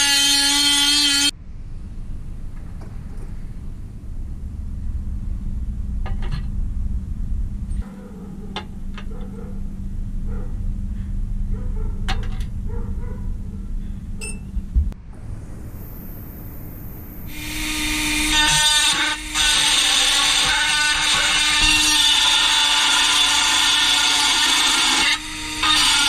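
A rotary tool whines loudly, grinding against metal.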